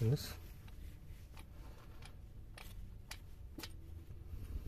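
A spark plug connector clicks and rattles as it is pulled loose.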